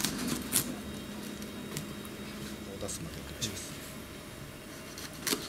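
A knife taps against a wooden cutting board.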